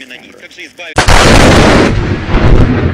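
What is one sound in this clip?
An explosion booms loudly outdoors.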